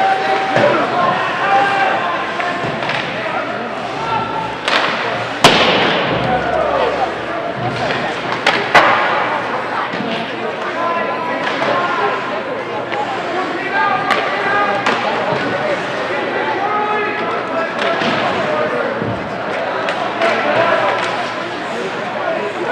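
Spectators chatter and shout in an echoing indoor rink.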